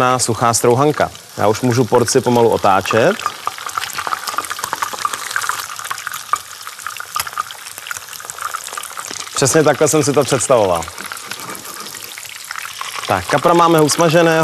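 Food sizzles and crackles as it fries in oil.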